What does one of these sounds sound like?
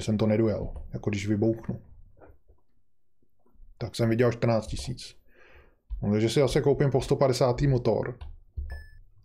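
A middle-aged man talks calmly and closely into a microphone.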